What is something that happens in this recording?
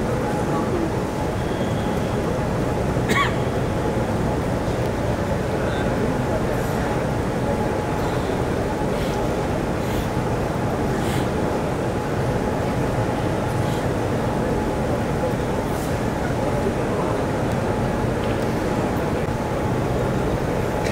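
A large crowd murmurs quietly all around.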